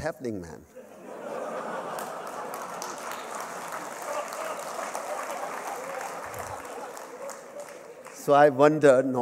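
A large audience laughs.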